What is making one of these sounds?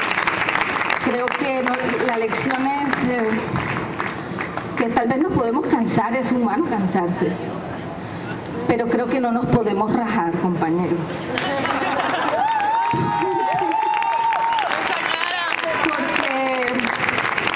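A middle-aged woman sings into a microphone, loud and close.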